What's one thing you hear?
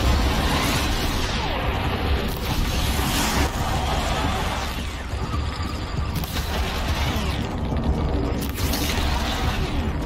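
Bowstrings snap as arrows fly.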